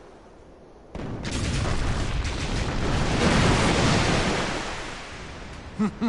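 Cannons fire with loud, rumbling booms.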